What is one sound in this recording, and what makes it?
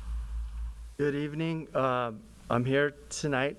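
A man speaks into a microphone in a calm, measured voice.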